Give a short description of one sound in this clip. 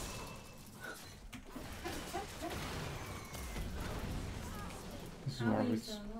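Magic spells crackle and whoosh in quick bursts.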